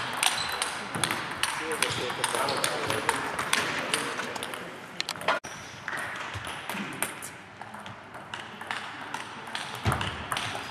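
Table tennis balls click against paddles and the table in a large echoing hall.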